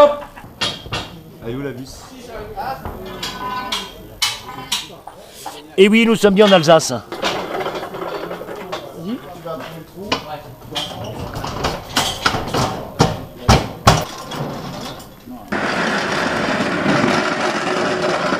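Metal staging parts clank and knock.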